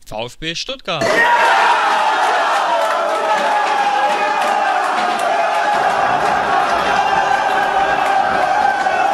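A group of young men cheers and shouts loudly and excitedly close by.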